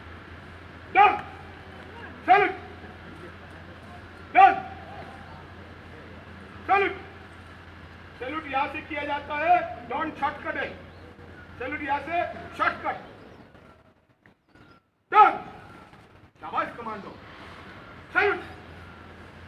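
A man shouts short, sharp drill commands.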